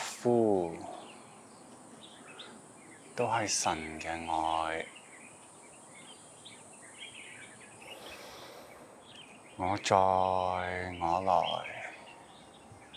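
A man speaks calmly and slowly, close by, with long pauses.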